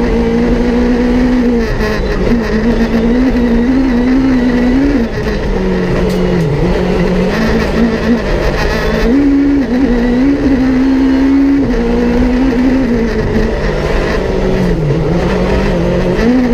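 A rally car engine roars loudly from inside the cabin, revving up and down through the gears.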